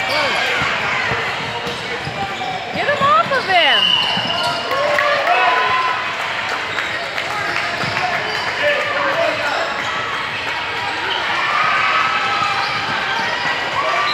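Players call out to one another in a large echoing hall.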